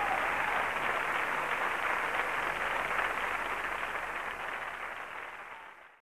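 A large audience claps and cheers loudly, fading toward the end.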